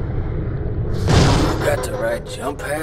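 A jump pad launches with a loud whoosh.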